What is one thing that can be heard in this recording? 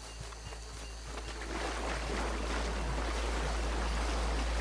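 A person wades and splashes through water.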